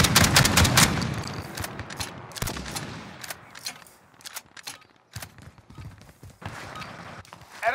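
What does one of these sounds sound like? A shotgun is reloaded with metallic clicks.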